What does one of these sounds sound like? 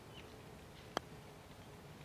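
A golf club strikes a ball with a short, crisp click.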